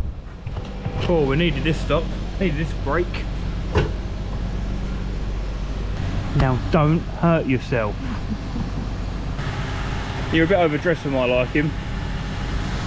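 A man talks calmly and close to the microphone.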